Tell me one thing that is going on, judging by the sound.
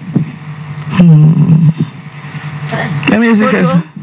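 A young woman speaks into a microphone with animation.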